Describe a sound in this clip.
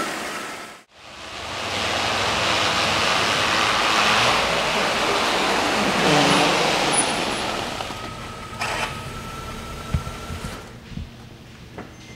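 A car engine idles in a large echoing hall.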